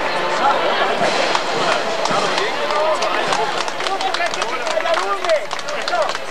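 Footsteps of heeled shoes click on pavement as a group marches.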